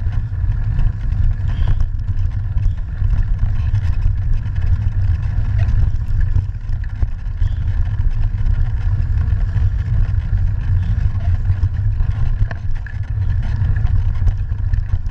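Wind buffets a microphone in a steady low rumble.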